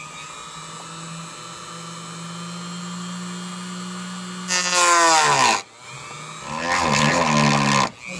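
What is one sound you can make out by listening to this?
A small rotary tool whirs steadily, then revs up into a loud high whine and winds down, twice.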